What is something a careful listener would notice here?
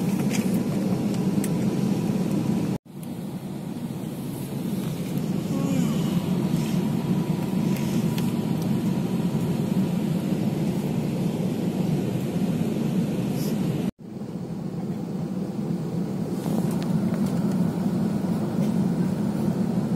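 A steady low roar of jet engines fills an aircraft cabin in flight.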